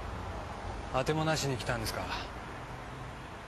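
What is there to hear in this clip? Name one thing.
A man speaks quietly in a low voice nearby.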